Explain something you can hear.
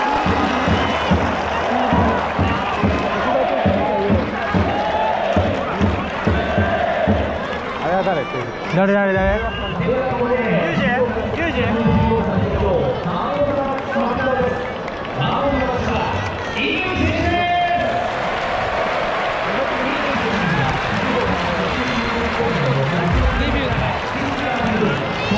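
A large stadium crowd cheers and chants loudly all around.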